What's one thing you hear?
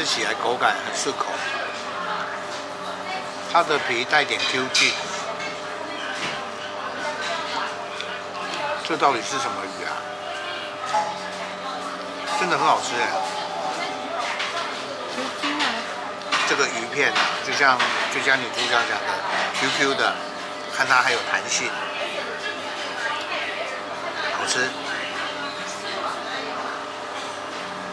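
A man chews and slurps food.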